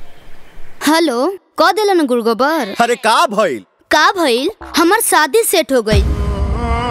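A young woman sings with a wavering, melodic voice.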